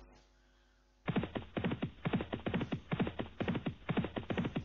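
Horses' hooves pound on turf at a fast gallop.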